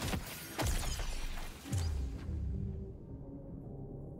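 A bright chime rings out for a level-up.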